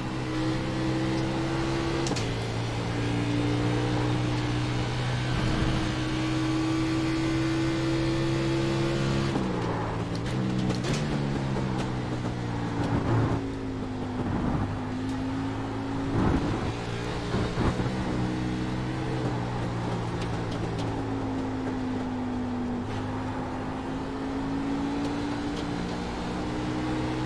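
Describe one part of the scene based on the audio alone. A race car engine roars steadily, dropping in pitch as gears shift down and rising again.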